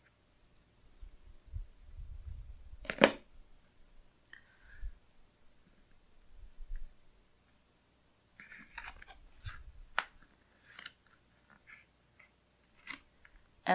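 Paper rustles and crinkles as hands press it flat.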